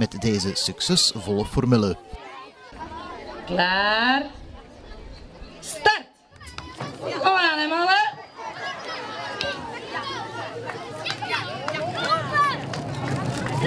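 Children chatter and shout outdoors.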